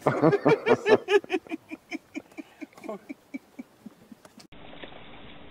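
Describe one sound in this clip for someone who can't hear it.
A man laughs heartily nearby, the laughter slowly dying away.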